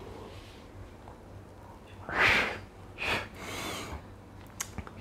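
A young man exhales smoke with a long breath.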